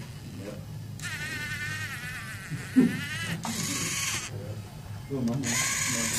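Small electric motors whir in short, high, whining bursts.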